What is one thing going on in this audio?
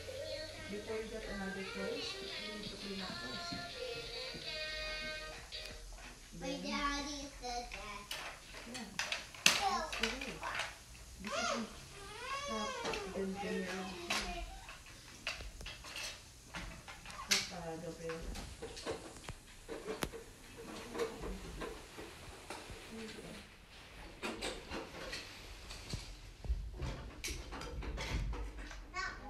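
Young children shout and chatter excitedly nearby.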